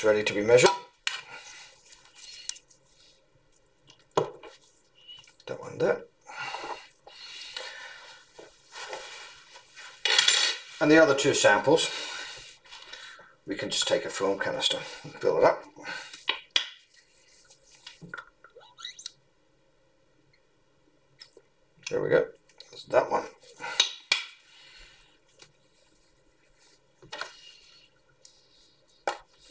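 Plastic bottles and jars knock lightly as they are set down on a hard table.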